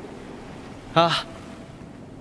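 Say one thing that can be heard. A young man answers briefly and calmly.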